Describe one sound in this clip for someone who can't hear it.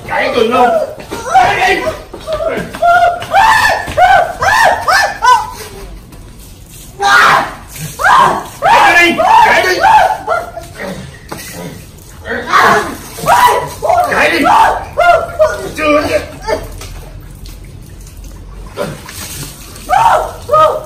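Men and women talk and shout with animation nearby.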